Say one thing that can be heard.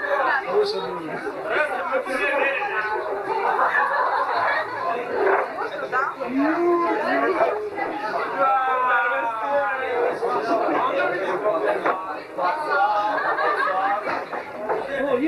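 A crowd of men and women talks and chatters loudly all around.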